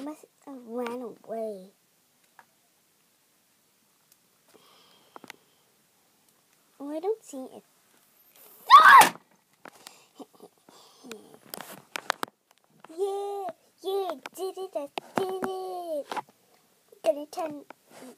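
A small plastic toy taps and thumps softly on carpet.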